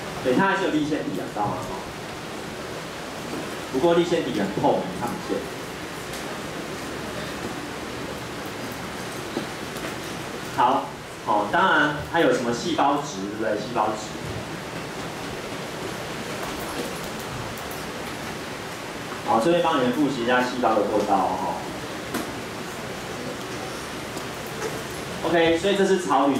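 A young man speaks calmly through a microphone, in bursts with pauses.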